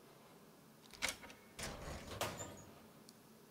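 A metal locker door clanks open.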